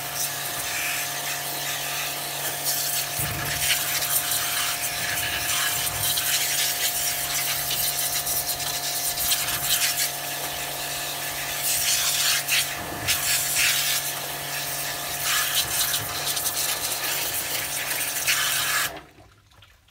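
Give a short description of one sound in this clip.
A strong jet of water sprays and hisses against a sandal on stone.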